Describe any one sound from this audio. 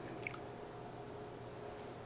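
Liquid pours from a bottle into a glass.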